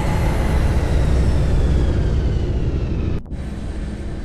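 A spacecraft engine roars with a deep, steady rumble.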